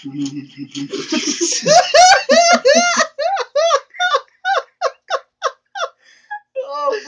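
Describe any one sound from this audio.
A young man laughs loudly and in bursts, close by.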